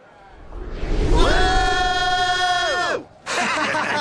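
A young man sings a long, held note.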